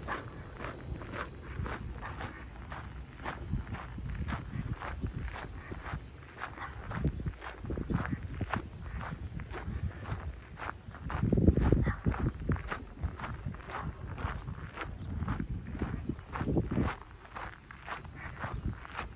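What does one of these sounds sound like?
Footsteps crunch on a gravel path at a walking pace.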